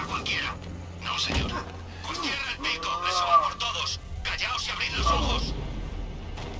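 Heavy punches and thuds land in a brief scuffle.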